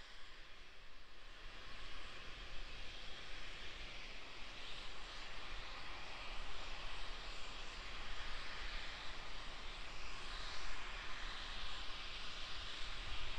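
Gas vents from a rocket with a steady distant hiss, heard outdoors.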